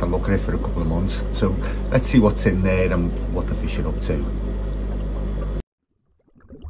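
A middle-aged man talks calmly into a microphone, close by.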